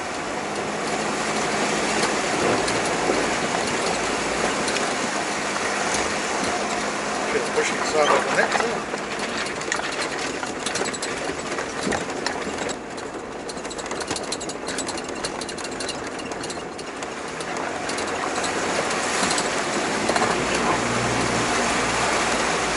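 River water splashes and rushes against a car.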